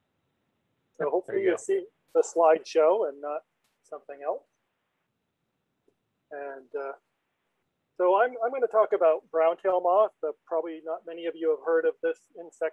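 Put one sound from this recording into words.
An elderly man speaks calmly through a call microphone, with pauses.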